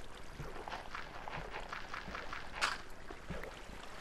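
Water splashes briefly as someone plunges into it.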